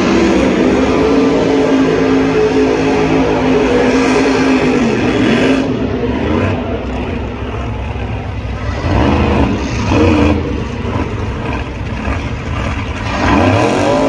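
A race car engine roars and revs loudly.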